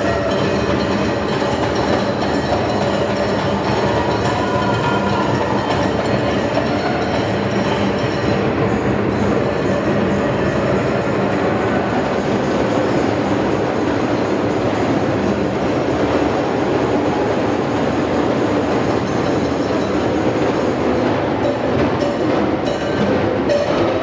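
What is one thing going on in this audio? A crowd claps along in time.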